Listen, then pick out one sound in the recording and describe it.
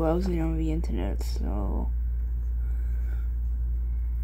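A finger taps lightly on a touchscreen.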